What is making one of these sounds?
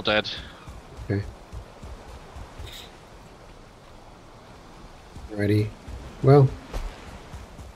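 Footsteps swish softly through tall grass.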